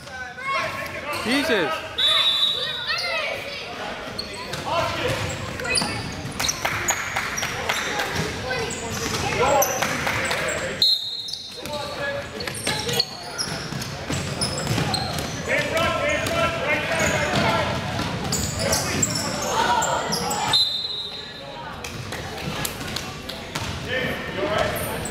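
Children shout and call out across a large echoing gym.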